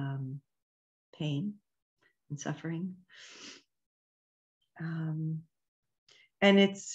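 An older woman speaks slowly and calmly through an online call microphone, with pauses.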